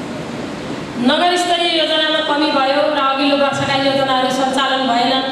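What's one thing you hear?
A woman speaks steadily into a microphone, heard through a loudspeaker.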